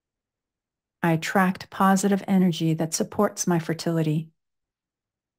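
A woman speaks calmly and closely into a microphone.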